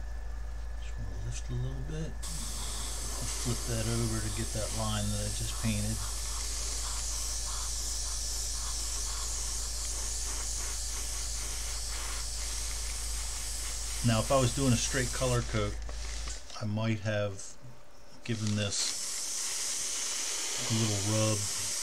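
A middle-aged man talks calmly into a microphone, close by.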